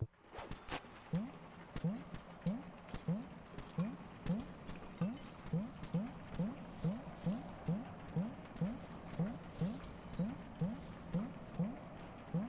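A video game plays a soft, steady pulsing tune.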